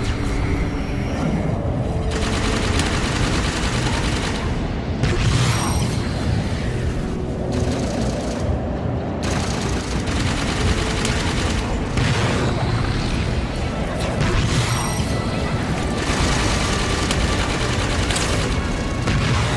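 A small craft's engine roars steadily as it flies.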